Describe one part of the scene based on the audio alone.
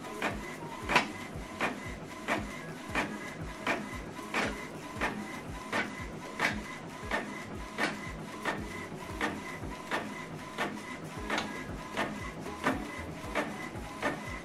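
An inkjet printer whirs and clicks rhythmically as it prints a page.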